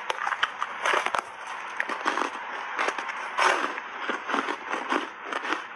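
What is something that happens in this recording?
A young woman chews food with wet, crunchy mouth sounds close to a microphone.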